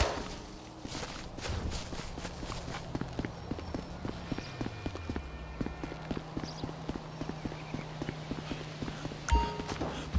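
Quick footsteps run over hard paving.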